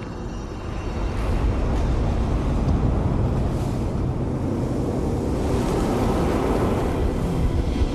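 A jetpack thruster roars with a deep, steady rumble.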